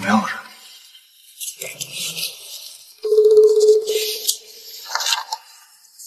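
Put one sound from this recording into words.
Paper pages rustle as a folder is flipped through.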